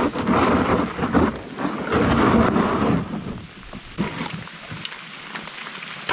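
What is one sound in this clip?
A canoe hull scrapes across gravel.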